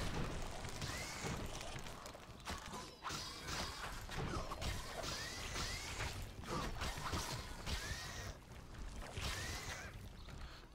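A giant centipede screeches.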